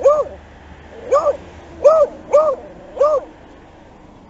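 A dog barks several times.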